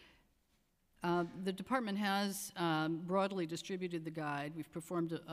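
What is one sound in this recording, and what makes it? A middle-aged woman speaks steadily into a microphone.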